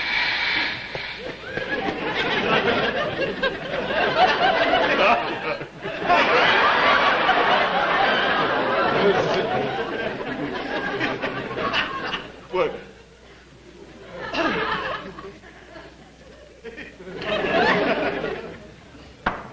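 An older man shouts and rants loudly, close by.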